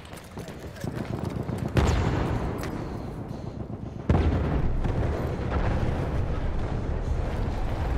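Explosions boom and debris rattles nearby.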